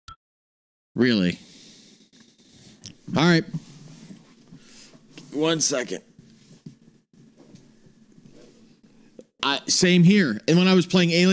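A young man talks animatedly and loudly into a close microphone.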